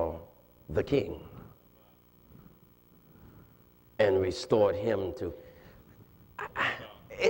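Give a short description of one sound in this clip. An elderly man preaches with animation through a microphone, in bursts with pauses.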